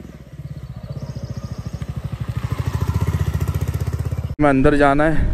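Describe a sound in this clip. A motorcycle engine thumps steadily as it rides closer.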